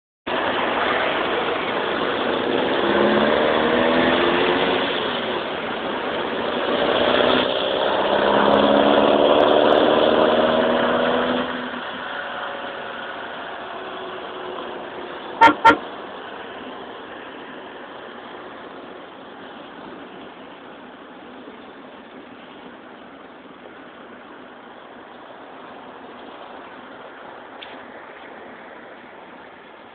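Wind and tyre noise rush steadily past a moving car.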